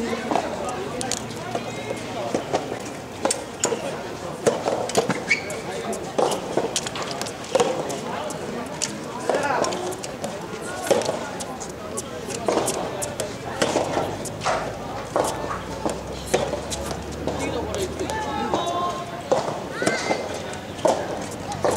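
Shoes squeak and scuff on a hard court.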